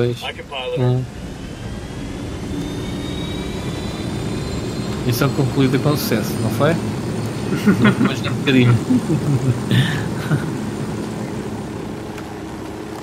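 A helicopter engine starts up with a rising whine and a loud rotor thumping.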